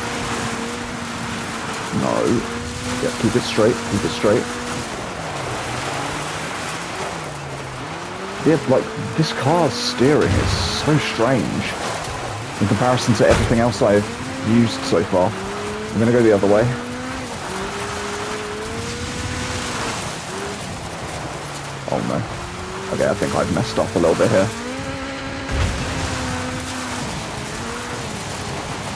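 An engine roars steadily, rising and falling in pitch as it revs and shifts gears.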